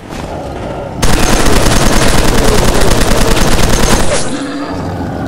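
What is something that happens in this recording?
A rifle fires in a rapid burst of shots.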